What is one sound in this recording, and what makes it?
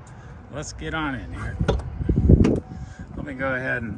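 A truck door clicks open.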